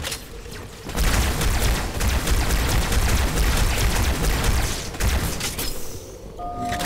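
Energy weapons fire with loud crackling blasts.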